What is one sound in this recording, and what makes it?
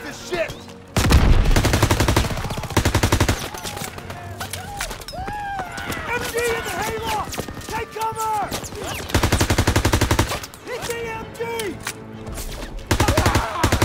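A submachine gun fires rapid bursts up close.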